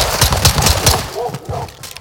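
A pistol fires several rapid shots indoors.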